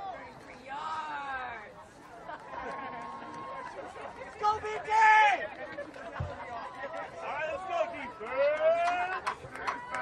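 Young players and spectators shout and cheer nearby outdoors.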